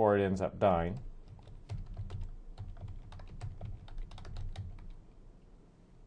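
Keys on a computer keyboard click as someone types.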